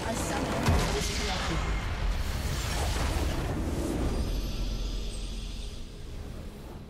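A large structure shatters in a loud, rumbling explosion that fades away.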